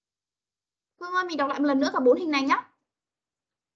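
A woman speaks clearly and with animation through an online call.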